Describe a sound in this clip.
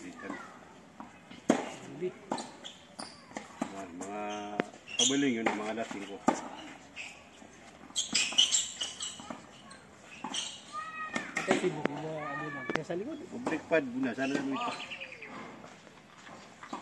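Men talk and call out on an outdoor court.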